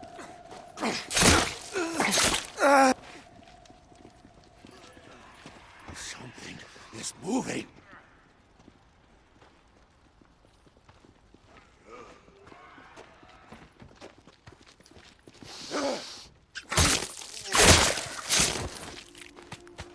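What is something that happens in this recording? Heavy blows land in a close fight.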